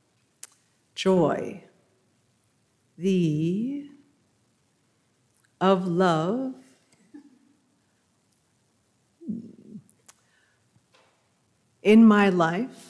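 A middle-aged woman speaks slowly into a microphone, in short phrases.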